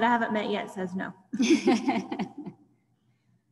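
A young woman speaks with animation over an online call.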